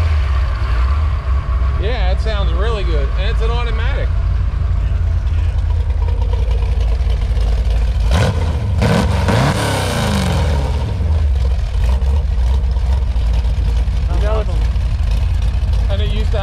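A car engine idles with a deep, steady rumble.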